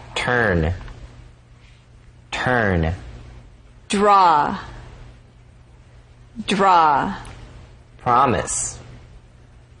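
A young man pronounces single words clearly into a microphone.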